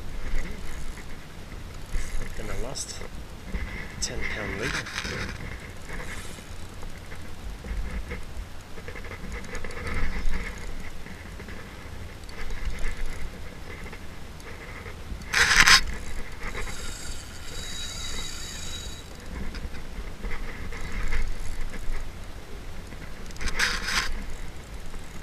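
Small waves lap against a plastic kayak hull.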